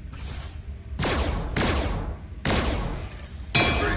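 A toy blaster fires in short hissing bursts.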